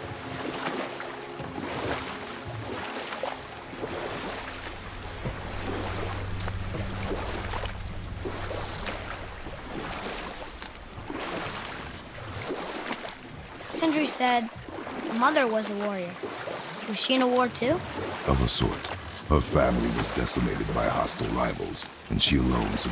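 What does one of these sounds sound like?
Oars splash and dip in calm water.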